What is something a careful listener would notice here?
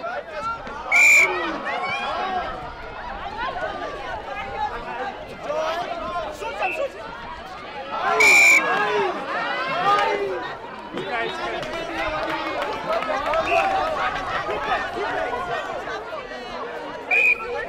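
An umpire's whistle blows in short, sharp shrill blasts.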